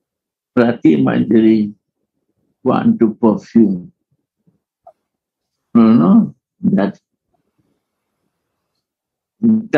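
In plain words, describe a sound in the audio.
An elderly man speaks with animation, heard through an online call, in short bursts with pauses.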